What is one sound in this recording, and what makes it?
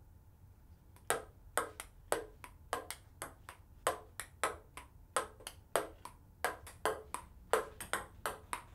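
A ping-pong ball clicks rapidly back and forth on a wooden table.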